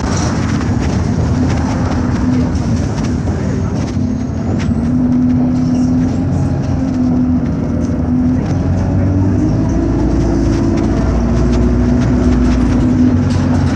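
A bus rattles and creaks as it moves.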